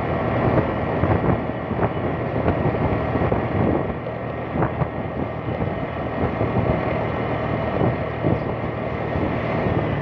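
A scooter engine hums steadily while riding.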